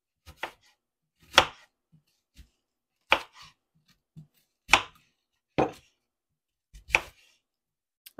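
A kitchen knife slices through an onion and knocks onto a wooden cutting board.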